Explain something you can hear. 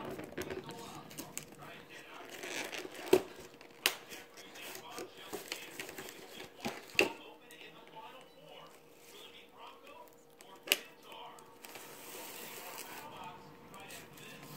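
A cat chews and crunches leafy greens.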